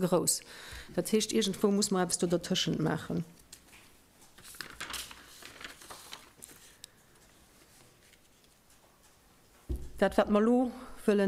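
A middle-aged woman speaks calmly into a microphone, with a slight echo.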